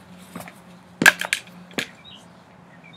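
A mower handle clatters with a few sharp knocks.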